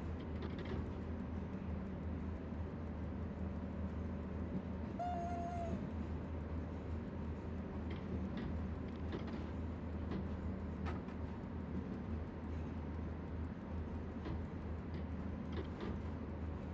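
An electric locomotive hums steadily as it rolls along the track.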